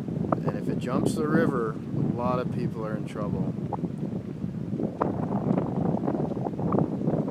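Wind blows outdoors across open water.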